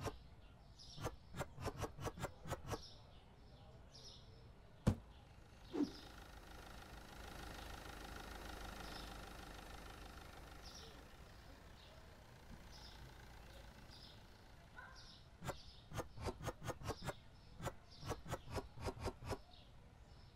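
Items thud quickly one after another onto a shelf.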